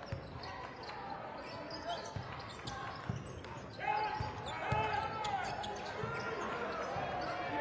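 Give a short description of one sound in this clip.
A large indoor crowd murmurs in an echoing hall.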